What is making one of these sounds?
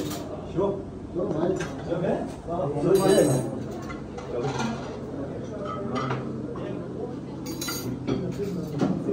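Several men talk nearby in a room.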